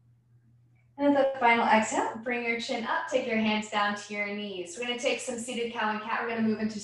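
A young woman speaks calmly into a microphone, heard as if over an online call.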